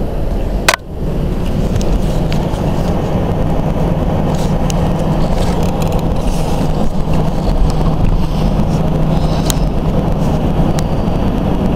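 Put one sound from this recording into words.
Wind rushes past an open car window.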